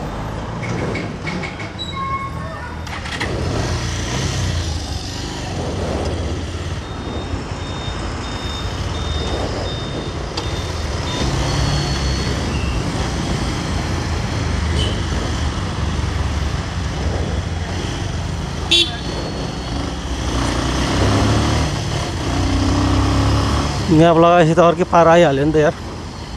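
A motorbike engine hums steadily up close as the bike rides along.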